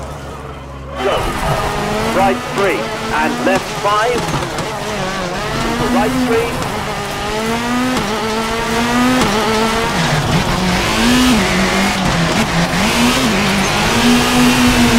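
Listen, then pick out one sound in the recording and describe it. Gravel sprays and crunches under the car's tyres.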